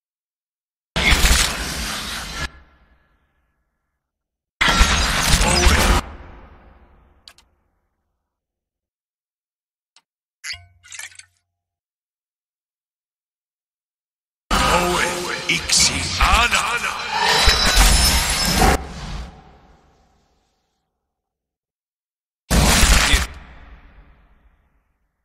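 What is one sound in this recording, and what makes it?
Magic spells burst with loud crackling, whooshing blasts that fade away.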